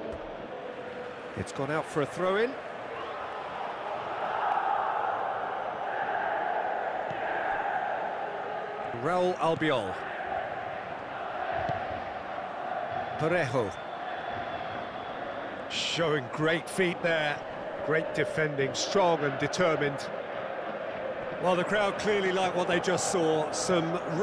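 A large crowd roars and murmurs steadily in a stadium.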